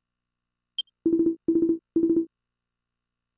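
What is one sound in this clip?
Short electronic blips sound three times in quick succession.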